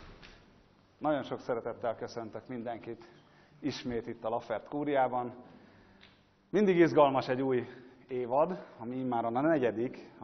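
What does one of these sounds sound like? A man speaks loudly and clearly to an audience in an echoing room.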